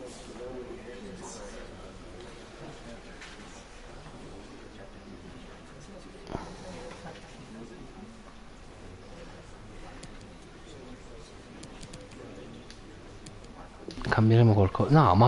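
A young man talks close to a microphone, quietly at first and then loudly and with animation.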